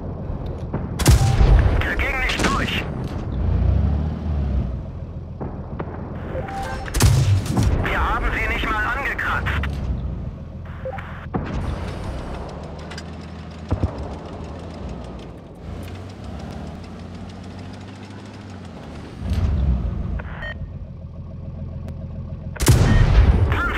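A tank cannon fires with a loud boom and ringing echo.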